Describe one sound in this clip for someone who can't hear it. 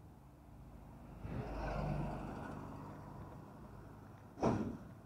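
A truck rumbles past on the road.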